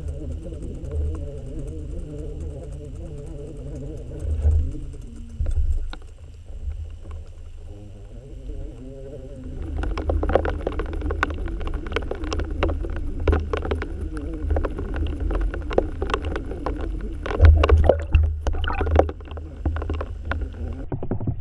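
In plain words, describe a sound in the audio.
Water rumbles and churns in a low, muffled way, as if heard from underwater.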